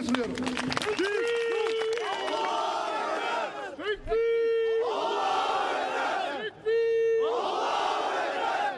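A crowd of men chants loudly together outdoors.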